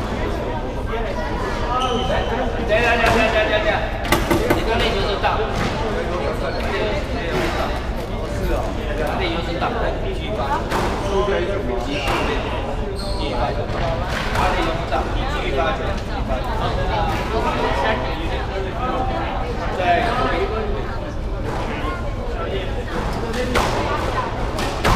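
A squash ball smacks off rackets and walls with sharp echoing thwacks.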